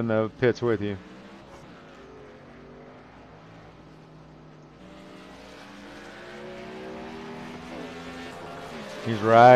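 Race car engines drone steadily.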